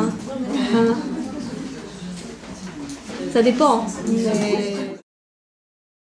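An older woman talks calmly and close by.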